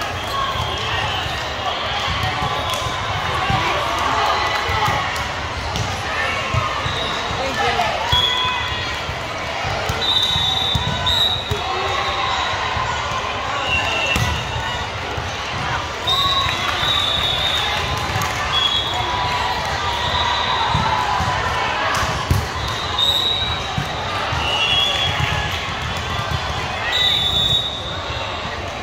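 Voices of young women chatter and call out, echoing in a large hall.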